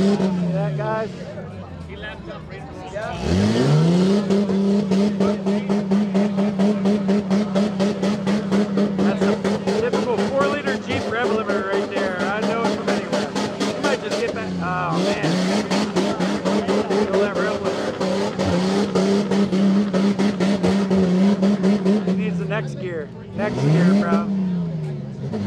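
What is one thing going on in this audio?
A truck engine revs hard and roars.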